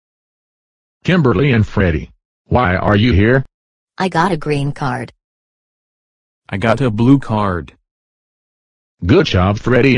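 A synthetic computer voice in a deeper tone speaks in short bursts.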